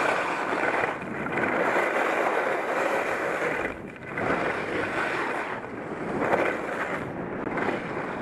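Skis scrape and carve over firm packed snow.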